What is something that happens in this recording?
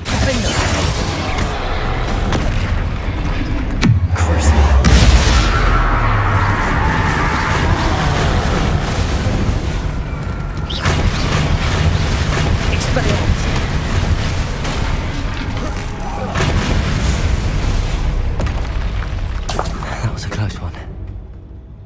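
Magic spells crackle and blast with loud bursts.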